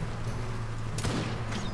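A fiery blast bursts close by.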